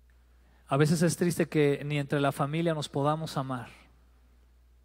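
A man speaks with animation through a headset microphone.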